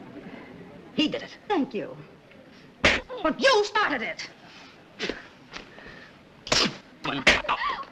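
A woman speaks sharply.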